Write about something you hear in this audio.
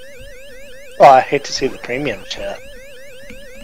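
A short electronic jingle plays loudly.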